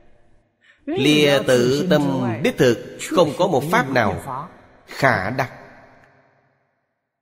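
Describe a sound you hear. An elderly man speaks calmly and clearly into a close microphone.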